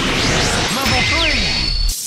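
A dark energy burst hums and swirls.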